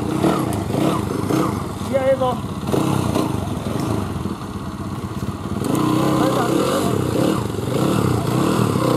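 A motorcycle engine revs and sputters close by.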